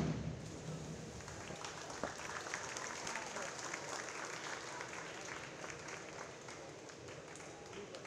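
Spectators clap and cheer.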